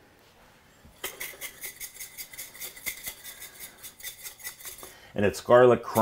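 A spice grinder grinds in quick, even strokes.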